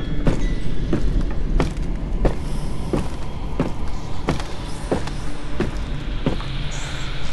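Steady knocks sound on a wooden ladder.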